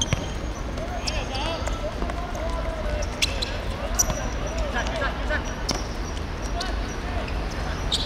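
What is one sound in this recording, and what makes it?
Young players shout and call out to each other outdoors.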